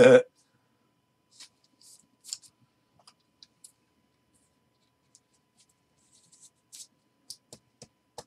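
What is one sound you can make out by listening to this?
A card slides into a plastic sleeve with a soft rustle.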